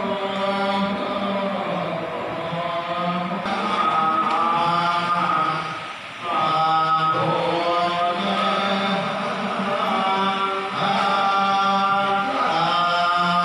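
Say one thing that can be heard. Several men chant together in a low, steady drone through a loudspeaker, in an echoing hall.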